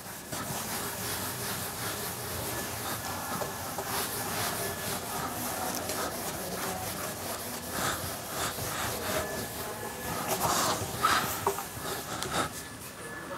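A felt duster rubs across a whiteboard.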